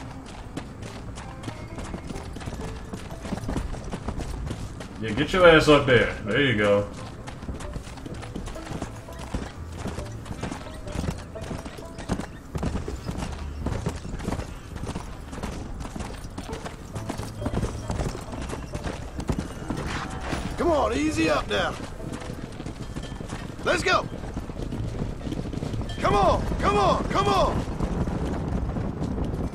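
Horse hooves gallop steadily over dry ground.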